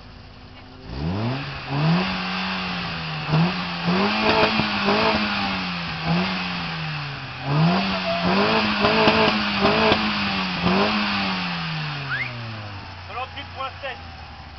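A car stereo blasts a deep bass tone that sweeps up and down over and over.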